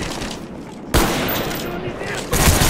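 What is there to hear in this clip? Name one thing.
A rifle fires a shot in a video game.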